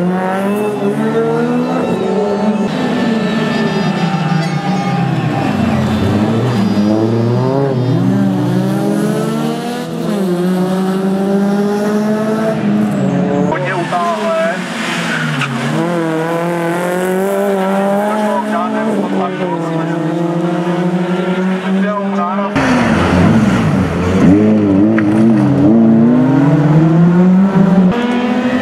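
A rally car engine revs hard, its pitch rising and falling with gear changes.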